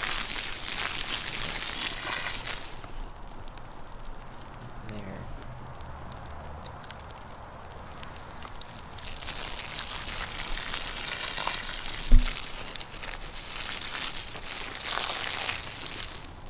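Burning wood pops and snaps now and then.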